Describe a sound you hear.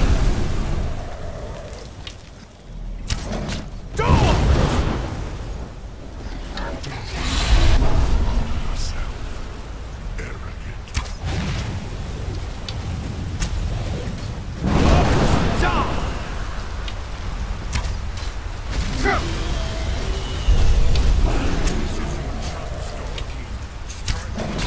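A bow twangs as arrows fly.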